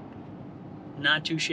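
A man speaks close by near the end.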